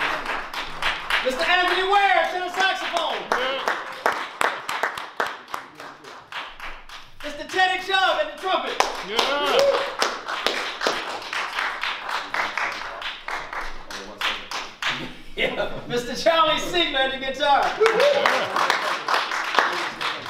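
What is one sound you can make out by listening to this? A jazz band plays live in an echoing hall.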